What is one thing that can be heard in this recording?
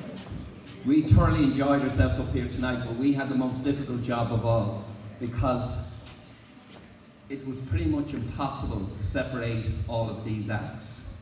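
An elderly man speaks into a microphone over loudspeakers in a large echoing hall.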